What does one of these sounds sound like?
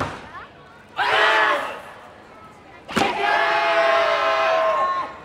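A group of young women shout a cheer in unison.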